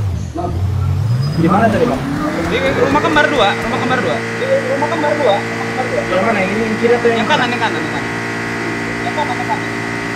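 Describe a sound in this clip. A car engine revs up and drones steadily as the car drives along.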